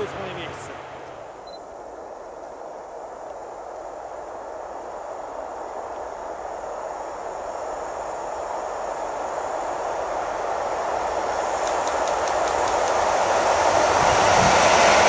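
A freight train approaches and grows steadily louder.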